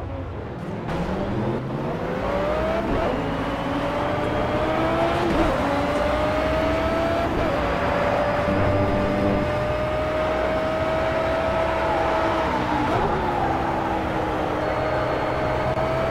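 A racing car engine roars loudly, rising in pitch through the gears and dropping at each shift.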